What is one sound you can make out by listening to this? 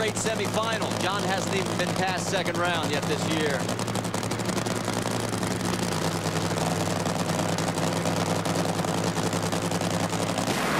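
A race car engine idles with a loud, steady, throbbing rumble.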